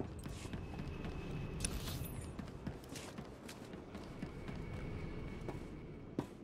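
Footsteps patter quickly as a figure runs.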